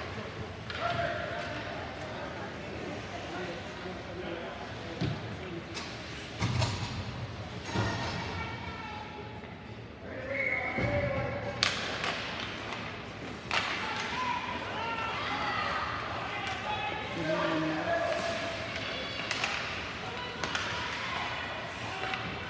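Young players and spectators shout and call out in a large echoing rink.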